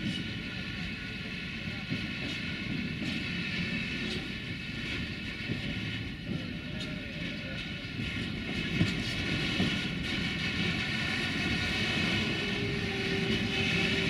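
A freight train rumbles slowly along the rails.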